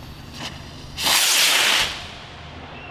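A rocket launches with a loud rushing whoosh.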